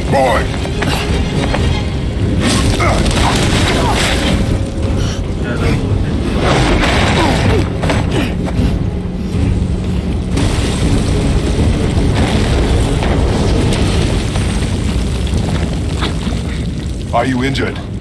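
Rocks rumble and crash as debris tumbles down.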